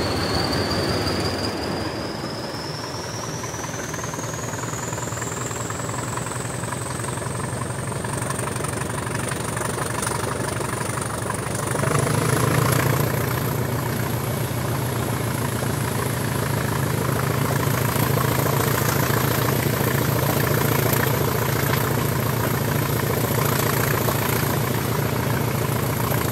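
A high whine from the engine rises in pitch.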